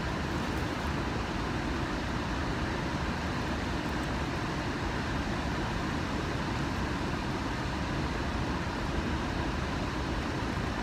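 Water rushes steadily from a spillway into a river.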